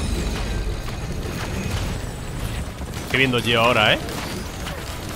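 Rapid energy blasts fire and crackle.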